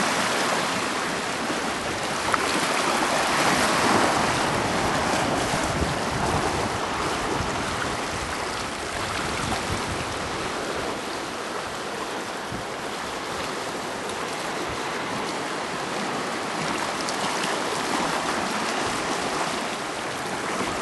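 Waves wash and splash over rocks close by.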